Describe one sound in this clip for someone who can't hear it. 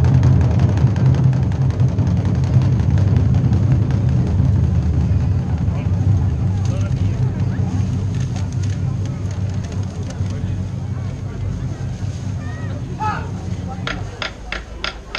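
Large drums boom from a distance outdoors.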